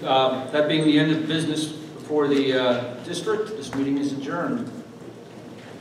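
A man speaks into a microphone through loudspeakers in a large echoing hall.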